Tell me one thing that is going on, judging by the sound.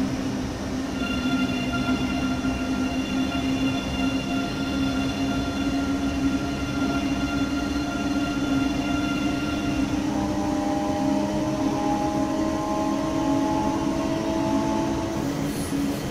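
An electric train motor whines steadily, its pitch shifting partway through.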